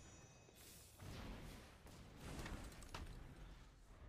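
A magical whoosh sweeps past.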